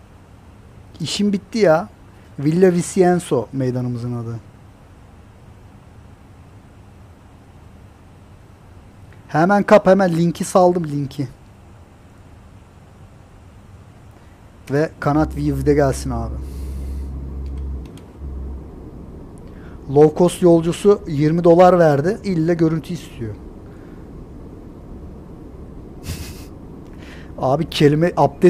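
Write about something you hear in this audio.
A middle-aged man talks calmly into a close microphone, in short bursts with pauses.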